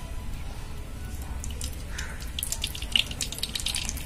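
Oil trickles and splashes into a clay pan.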